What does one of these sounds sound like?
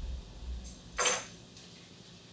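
Paper rustles briefly as it is handled.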